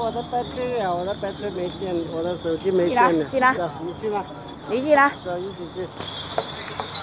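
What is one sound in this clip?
Young people chatter loudly nearby.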